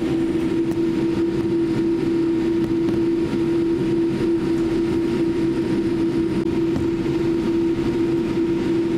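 Jet engines hum steadily inside an airliner cabin as it taxis.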